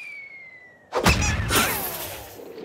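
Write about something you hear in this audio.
A heavy rock crashes down with a loud thud.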